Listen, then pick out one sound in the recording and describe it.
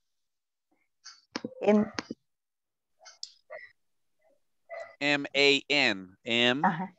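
A man speaks over an online call, with animation.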